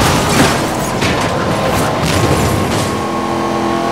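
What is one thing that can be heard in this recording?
A car scrapes against a roadside barrier.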